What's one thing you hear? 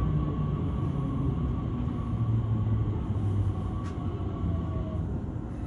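A train rumbles steadily as it rolls along.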